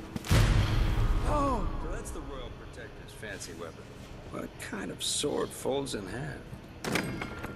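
A man speaks in a gruff, menacing voice, close by.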